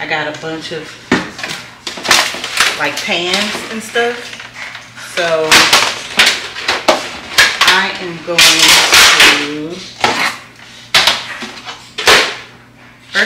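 Foil trays crinkle and clatter as they are handled.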